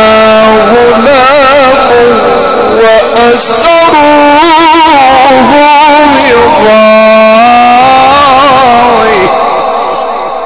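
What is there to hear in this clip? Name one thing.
A man chants loudly and melodiously into a microphone, heard through loudspeakers with a long echo that fades away.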